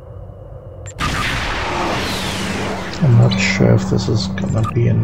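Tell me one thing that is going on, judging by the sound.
A loud rushing whoosh plays as the game scene changes.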